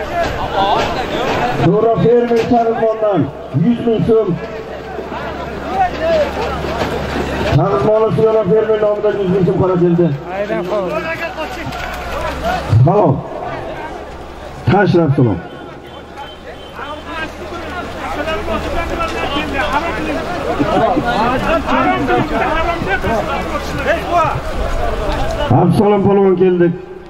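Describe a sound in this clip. A crowd of men shouts and talks outdoors.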